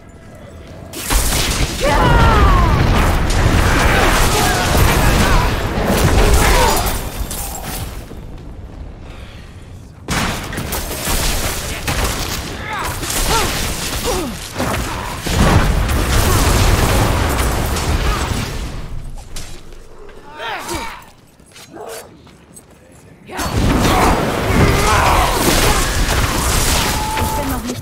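Fiery spells roar and crackle in bursts.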